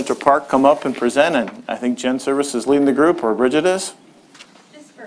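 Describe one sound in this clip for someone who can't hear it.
A woman speaks calmly through a microphone, heard in a large room.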